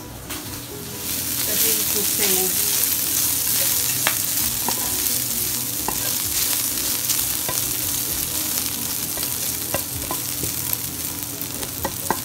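Bacon sizzles loudly in a hot frying pan.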